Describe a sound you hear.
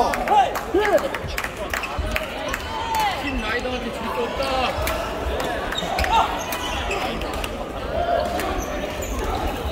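Many voices murmur and call out in a large echoing hall.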